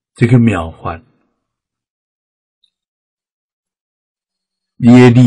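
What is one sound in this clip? An elderly man speaks calmly and slowly, close to a microphone.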